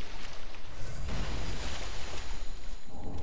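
Flames burst with a roaring whoosh.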